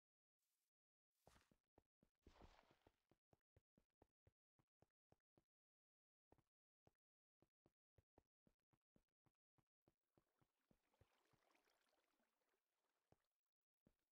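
Footsteps tap at a steady pace on hard ground.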